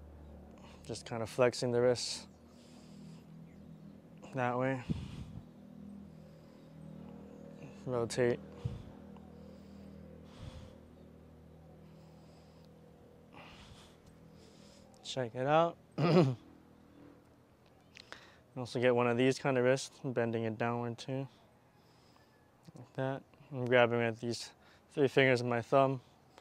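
A young man speaks calmly and close by, with pauses.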